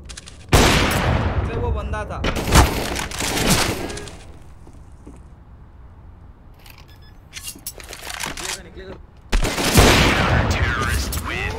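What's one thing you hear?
A sniper rifle fires loud single shots that echo.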